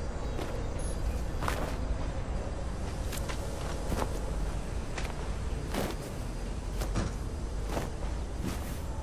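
Laundry rustles and flaps on a line.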